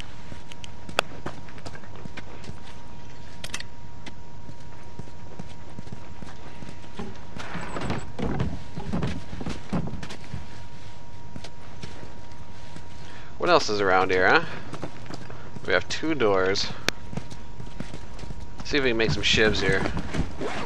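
Footsteps crunch on debris on a hard floor.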